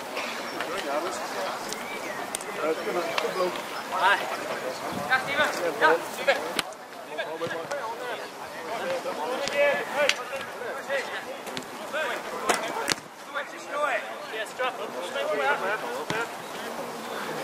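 Several men shout and call out to each other outdoors.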